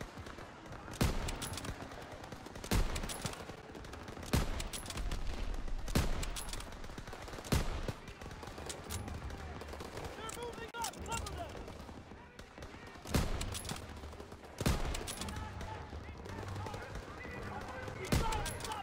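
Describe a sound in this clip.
Loud rifle shots ring out one at a time, with a booming echo.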